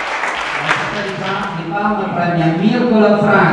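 A man speaks through a microphone and loudspeaker.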